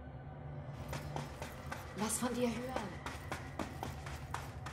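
Footsteps run over soft ground.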